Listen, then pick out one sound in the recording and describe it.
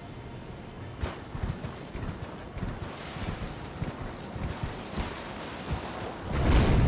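Hooves thud rapidly on soft ground as a horse gallops.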